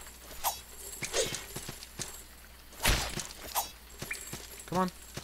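Sword strikes and hits land on a monster in a video game.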